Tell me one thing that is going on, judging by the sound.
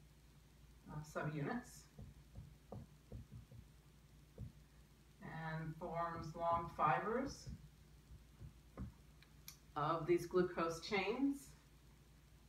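A woman speaks calmly nearby, explaining in short phrases.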